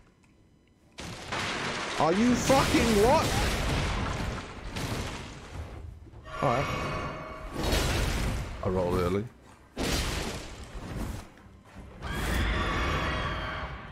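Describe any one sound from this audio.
A monster roars and screeches in a fight.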